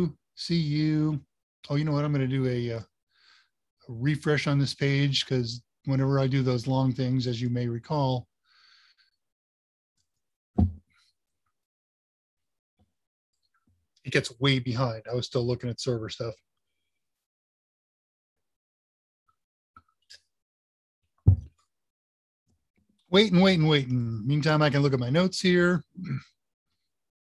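An older man talks calmly over an online call, with pauses.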